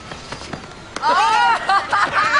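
A man shouts loudly and excitedly.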